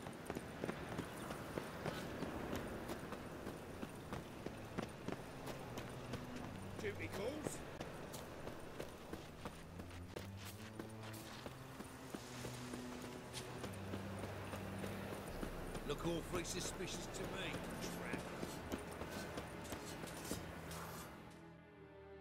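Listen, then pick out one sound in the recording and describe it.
Footsteps thud quickly on cobblestones.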